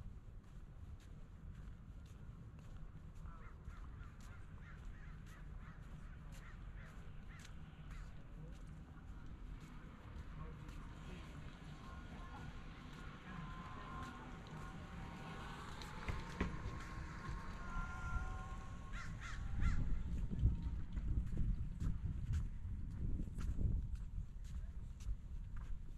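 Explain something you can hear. Footsteps walk at an even pace on a paved path outdoors.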